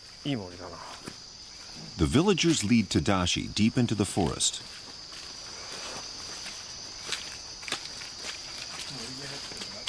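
Footsteps crunch on leaves on a forest floor.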